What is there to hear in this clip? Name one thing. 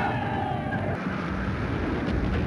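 A young woman speaks excitedly.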